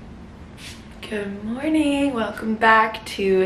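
A young woman speaks close by, in a friendly, animated way.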